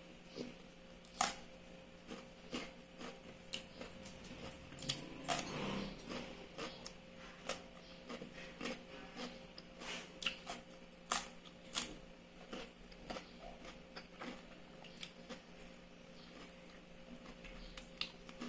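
A woman chews and eats with crisp, wet mouth sounds close by.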